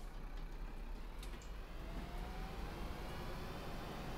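Bus doors hiss and thud shut.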